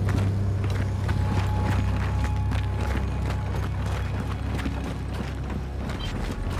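Heavy boots thud in steady footsteps on a hard floor.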